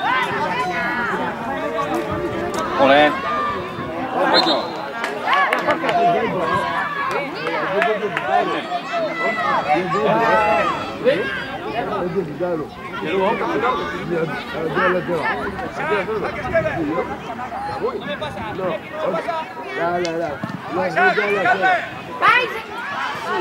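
Children shout to each other outdoors.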